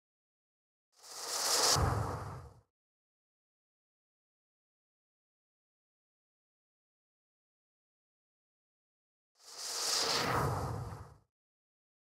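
A car whooshes past.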